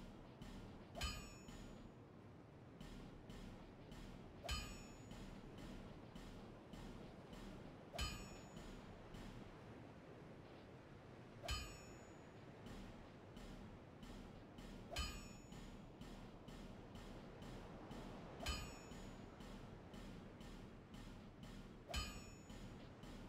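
Bright chimes ring out at regular intervals.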